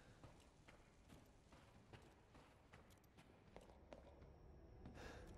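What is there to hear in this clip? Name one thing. Footsteps thud steadily on a hard floor in a quiet, echoing hall.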